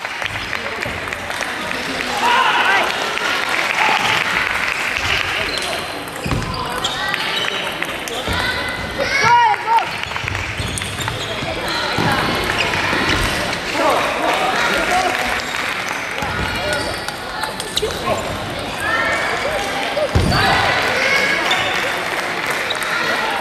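Many young voices chatter throughout a large echoing hall.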